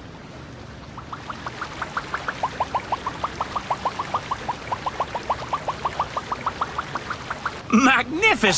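Rapid plinking game tones rise and fall.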